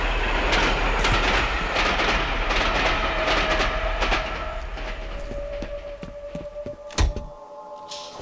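Footsteps thud on a hard floor in an echoing corridor.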